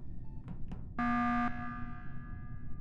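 A loud alarm blares suddenly and rings out.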